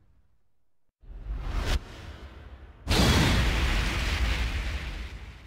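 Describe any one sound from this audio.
A deep whoosh sweeps past.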